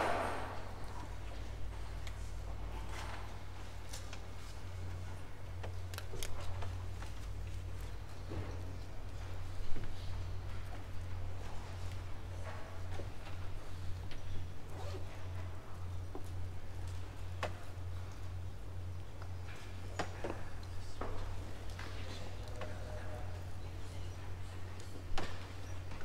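Members of a seated congregation shift and knock faintly against wooden pews in a large echoing hall.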